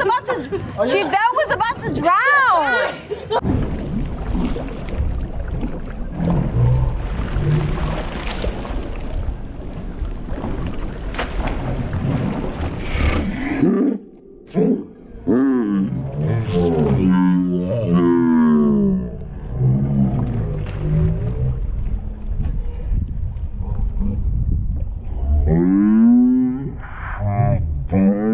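Young women shout and laugh excitedly nearby.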